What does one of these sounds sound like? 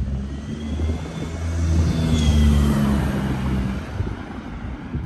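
A small car drives past close by with a humming engine and fades away.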